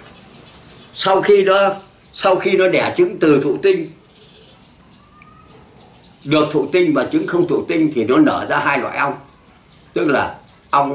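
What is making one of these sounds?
An elderly man speaks calmly and with feeling, close by, in short bursts with pauses.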